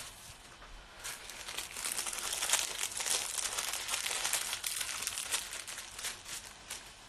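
Paper crinkles and rustles as a box is handled.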